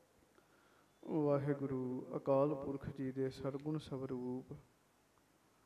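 A young man sings a slow, drawn-out melody into a microphone.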